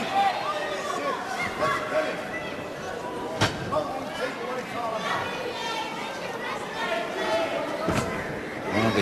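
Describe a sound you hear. A crowd murmurs in a large hall.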